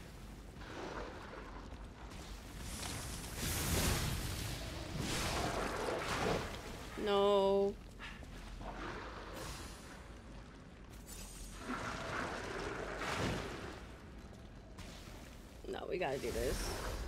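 A young woman speaks casually into a microphone.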